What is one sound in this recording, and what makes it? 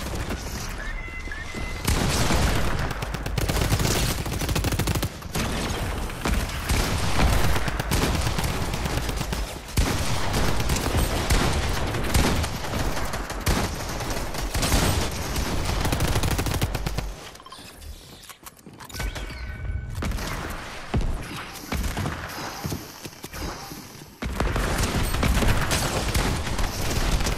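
Rapid gunshots crack and rattle in quick bursts.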